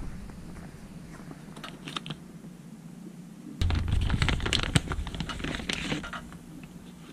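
A plastic bag crinkles and rustles loudly.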